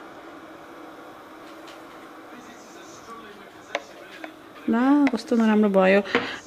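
Milk pours softly into a cup.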